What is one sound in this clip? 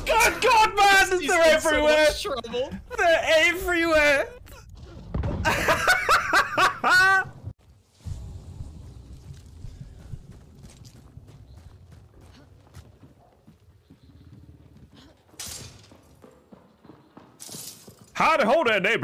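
A young man shouts and laughs excitedly into a close microphone.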